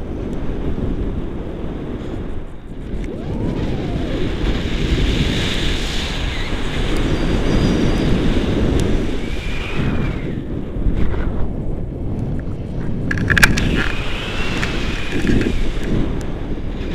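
Wind rushes and buffets the microphone during a tandem paraglider flight.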